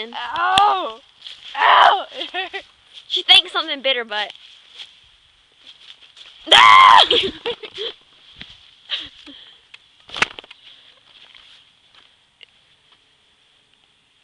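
A young woman shouts and laughs close by.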